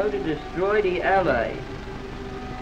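Young men talk excitedly over one another.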